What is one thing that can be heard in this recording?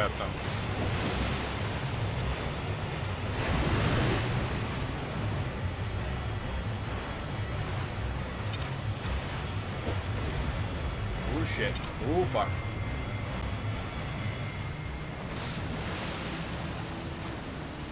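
Water splashes and churns.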